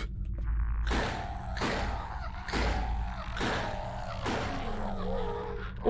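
A gun fires several shots in quick succession.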